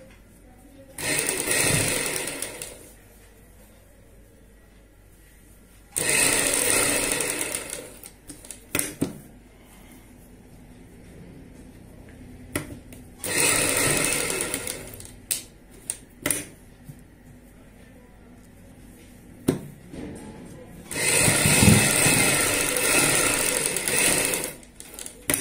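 A sewing machine whirs in short bursts of stitching.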